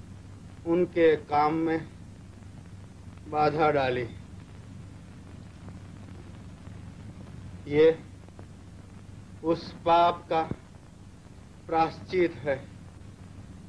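A young man speaks calmly in short phrases.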